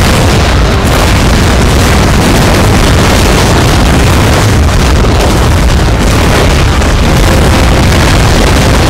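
Many feet trample across the ground in a dense, steady roar.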